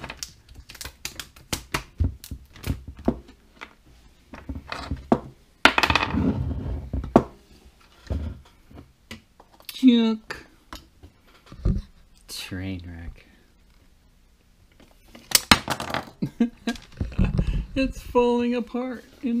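Metal parts of a gun click and rattle as they are handled.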